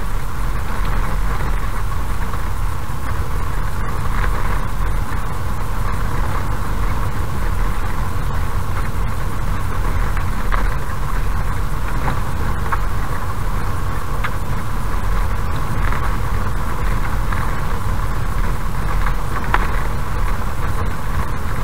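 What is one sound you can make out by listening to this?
Tyres rumble and crunch over a gravel road.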